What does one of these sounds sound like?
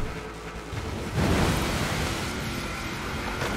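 Tyres splash through water.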